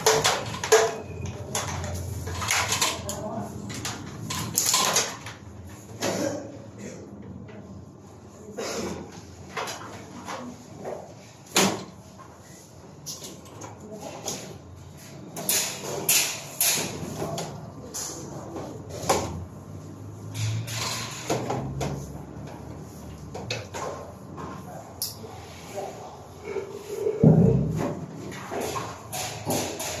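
Cables rustle and knock against each other as they are pulled and handled overhead.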